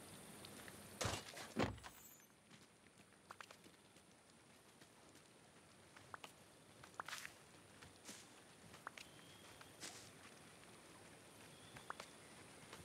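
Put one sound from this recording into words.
A character digs in soft ground with short scraping sounds.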